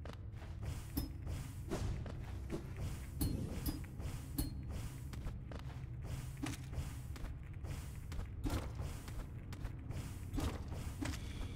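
Sharp sword slashes whoosh and clang again and again.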